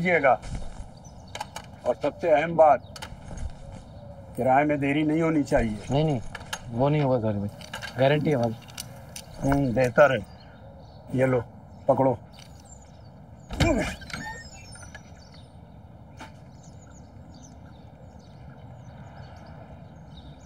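A younger man answers briefly.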